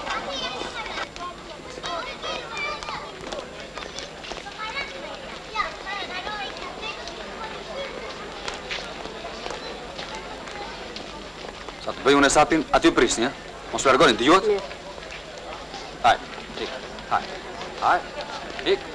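Boys talk and call out with animation.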